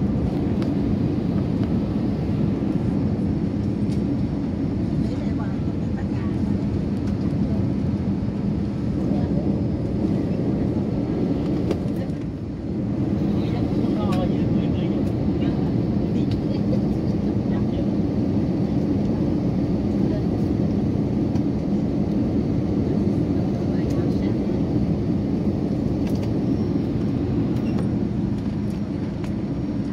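A jet engine roars steadily inside an aircraft cabin.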